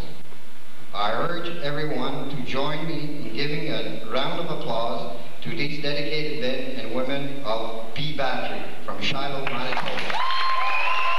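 An older man reads out calmly through a microphone and loudspeaker in a large echoing hall.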